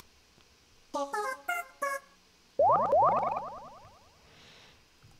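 A video game plays short chiming jingles.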